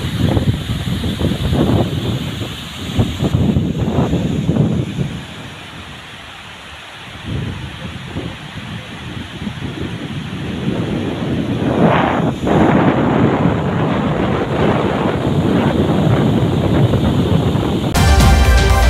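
Water rushes and roars over a dam spillway.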